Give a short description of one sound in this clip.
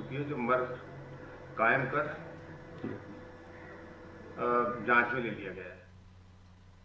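A middle-aged man speaks calmly into a microphone, close by.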